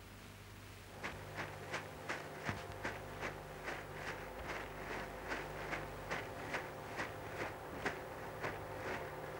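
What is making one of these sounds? Footsteps thud steadily on a dirt path as a man runs.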